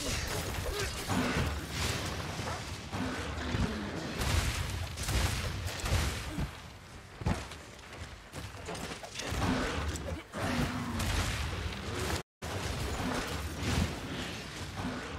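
Sword blows clang and thud against a monster.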